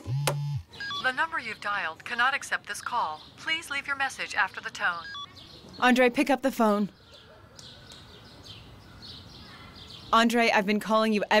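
A young woman talks on the phone, calmly and close.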